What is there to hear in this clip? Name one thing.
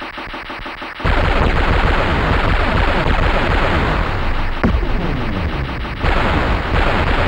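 Machine guns fire in rapid bursts.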